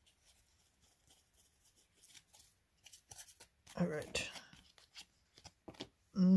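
Trading cards rustle and flick as hands shuffle through them.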